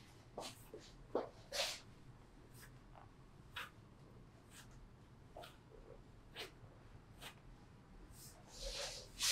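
Hands pat and tap rhythmically on a person's body.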